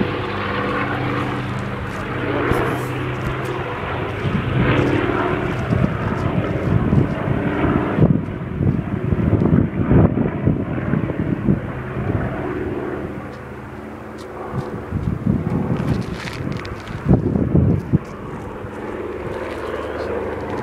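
Wind gusts across an open hilltop.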